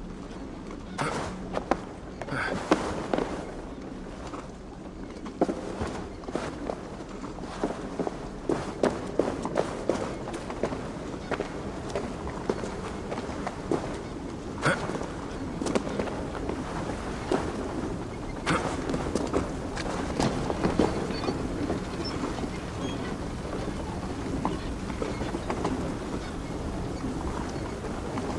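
Footsteps thud and scrape on wood and stone.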